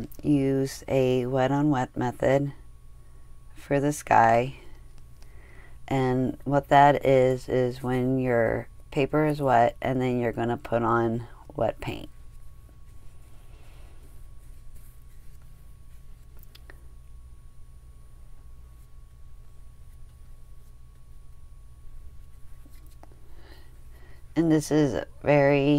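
A soft brush swishes over paper.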